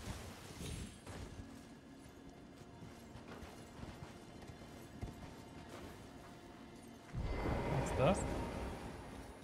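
A horse's hooves clop steadily on stone.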